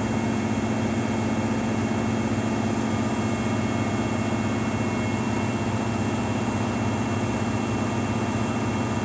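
A front-loading washing machine hums and whirs as its drum spins at high speed.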